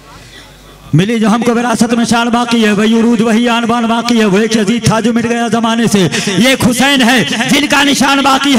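A man chants loudly into a microphone through loudspeakers.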